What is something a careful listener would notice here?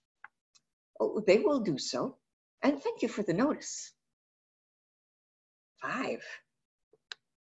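A woman speaks calmly over an online call, reading out.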